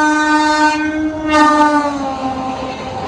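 A locomotive horn blares loudly and then fades.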